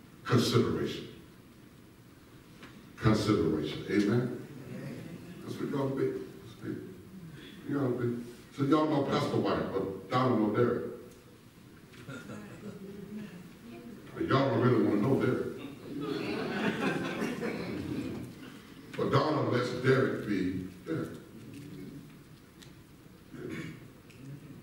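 A man speaks with animation over a microphone in a large echoing hall.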